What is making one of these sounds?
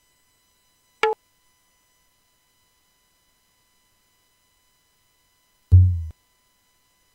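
A short sound clip plays briefly from a computer, twice.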